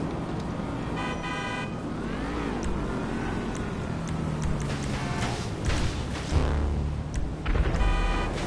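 Short electronic menu beeps chime in quick bursts.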